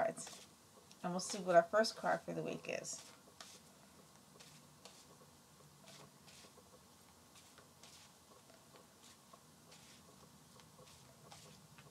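Playing cards softly rustle and shuffle.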